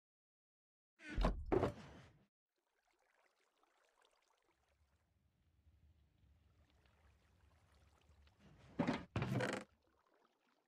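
A box lid thuds shut.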